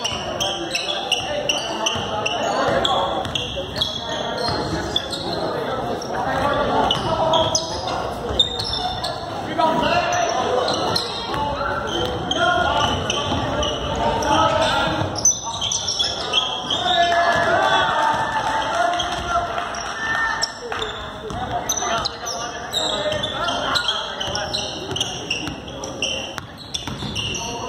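A crowd of spectators chatters and calls out.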